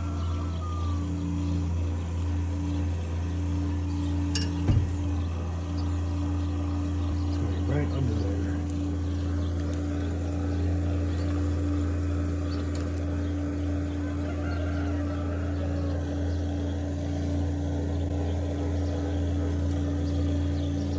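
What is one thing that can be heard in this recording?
An engine idles with a steady low hum nearby.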